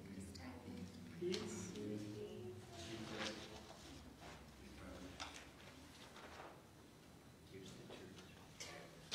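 A woman reads aloud calmly through a microphone in an echoing room.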